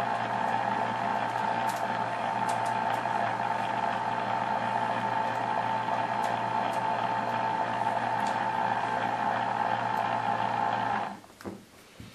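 A rotating warning beacon whirs and hums steadily, then stops.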